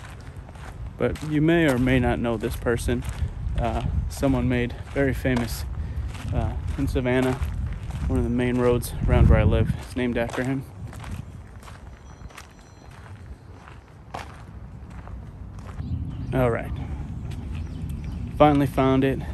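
A young man talks calmly and close to the microphone, outdoors.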